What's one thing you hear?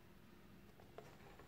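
A fingertip taps softly on a tablet's glass.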